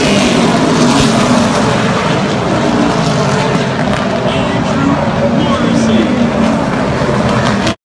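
Race car engines roar loudly as cars speed around a track.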